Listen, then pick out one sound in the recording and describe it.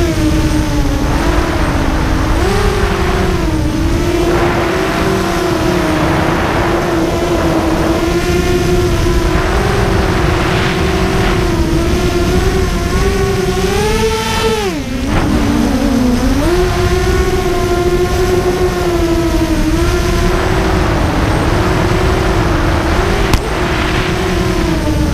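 Wind rushes and buffets past outdoors.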